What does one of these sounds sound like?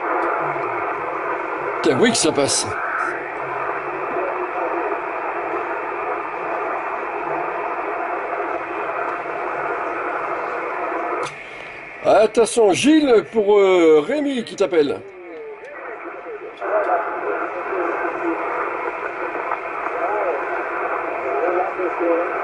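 Static hisses from a radio loudspeaker.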